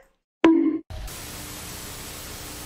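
Static hisses loudly.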